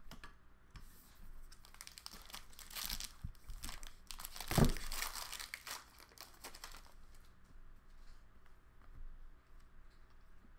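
Cards and plastic wrapping rustle and crinkle close by.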